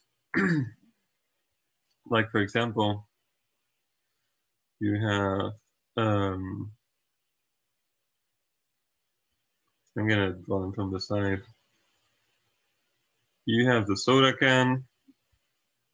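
A young man speaks calmly into a microphone, in short phrases with pauses.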